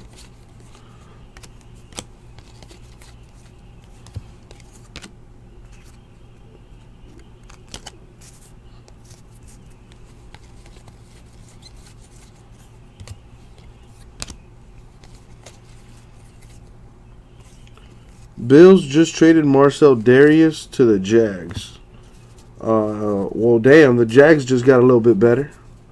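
Trading cards rustle and click softly as they are shuffled by hand.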